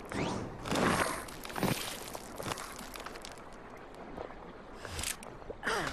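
A stone pillar grinds and rumbles as it rises from the ground.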